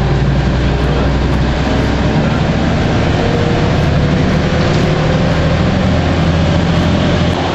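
Road noise rushes past the bus windows.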